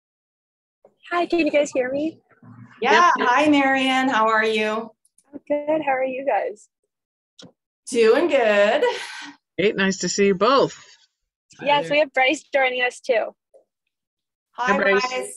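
A young woman talks cheerfully over an online call.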